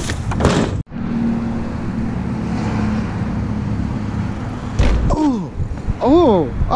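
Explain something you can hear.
Bicycle tyres roll over a concrete floor.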